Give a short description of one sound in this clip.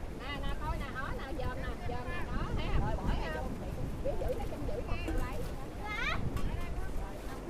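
Several women talk with animation close by.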